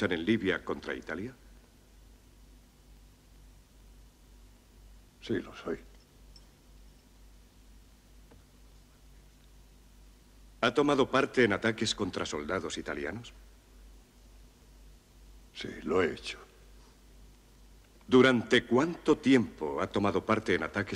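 A man speaks calmly and firmly, with long pauses.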